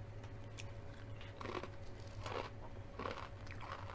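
Crunchy chips crackle loudly as a woman bites into them close up.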